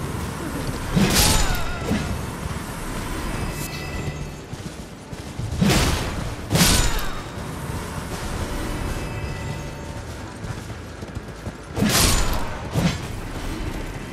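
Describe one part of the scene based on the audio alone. Heavy weapon blows whoosh and crash in short bursts.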